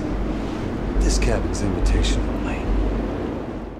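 A man speaks in a low, menacing voice.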